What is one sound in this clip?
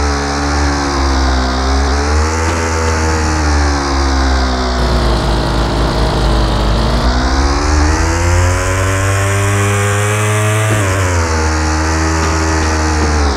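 A motorcycle engine revs, its pitch rising and falling.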